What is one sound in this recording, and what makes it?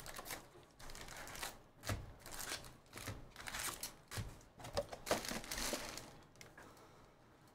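Card packs rustle as a box is opened.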